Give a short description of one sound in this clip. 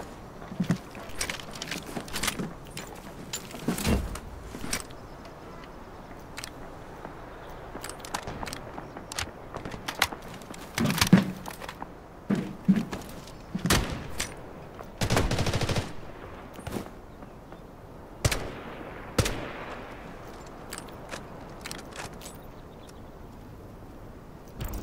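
Short interface clicks and rustling item sounds come in bursts.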